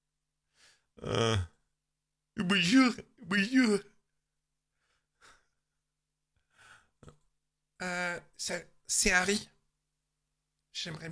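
A man speaks with animation into a microphone in short bursts.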